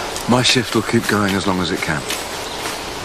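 An elderly man speaks tensely, close by.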